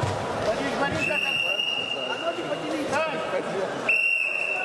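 A referee blows a whistle sharply.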